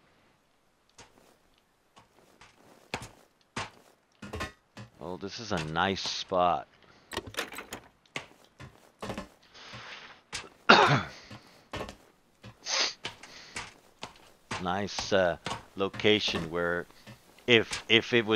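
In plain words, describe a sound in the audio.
Footsteps clang on a metal grating.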